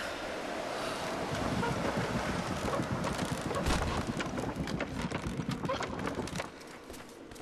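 A winch creaks as a rope winds onto a drum.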